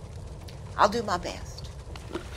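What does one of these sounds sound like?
An elderly woman speaks calmly and briefly.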